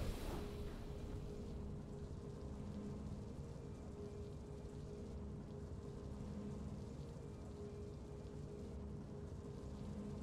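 Soft, steady game music plays.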